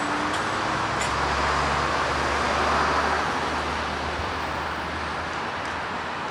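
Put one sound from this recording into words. A truck engine idles with a low rumble close by.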